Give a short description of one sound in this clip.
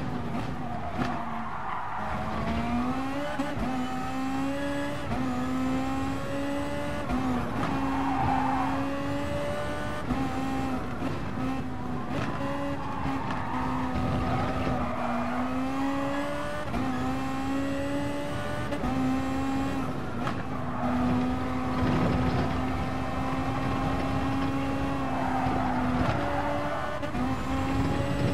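A racing car engine roars, revving up and dropping in pitch with each gear change.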